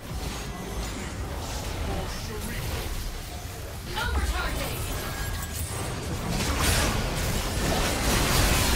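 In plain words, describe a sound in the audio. Fantasy battle sound effects of spells and weapon strikes clash and burst.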